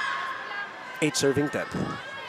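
A volleyball is struck hard on a serve.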